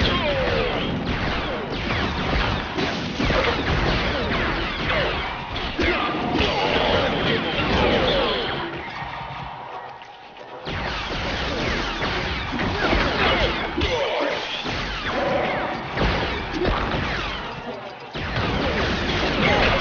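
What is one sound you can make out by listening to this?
Blaster shots zap rapidly.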